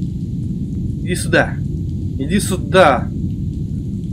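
A man speaks in short bursts close to a microphone.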